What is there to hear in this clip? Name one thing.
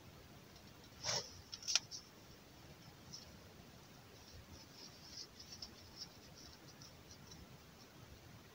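Stiff fabric rustles and crinkles close by.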